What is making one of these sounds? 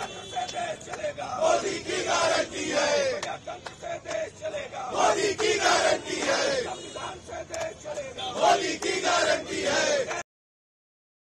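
A crowd of men chant slogans loudly outdoors.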